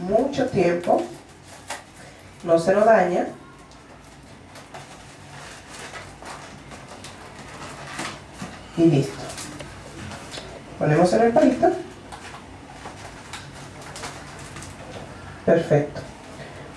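A woman speaks calmly in short phrases close by.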